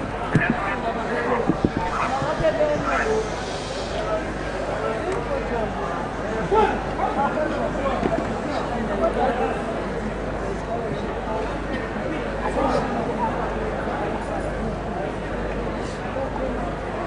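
A man speaks formally through a microphone and loudspeakers, echoing outdoors.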